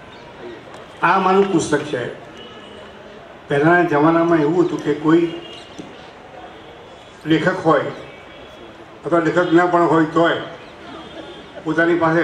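An elderly man speaks with animation through a microphone and loudspeakers, in bursts with pauses.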